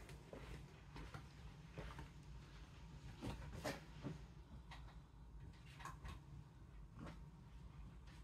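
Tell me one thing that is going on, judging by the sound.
Fabric rustles as a pillow is set down on a bed.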